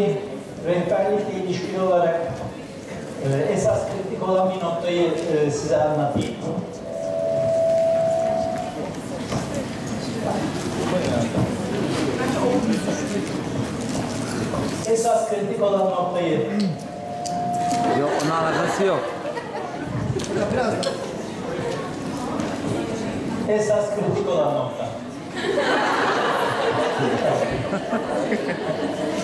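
A man speaks with animation through a loudspeaker in a large echoing hall.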